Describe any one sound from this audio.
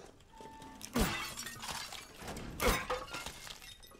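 A ceramic vase shatters.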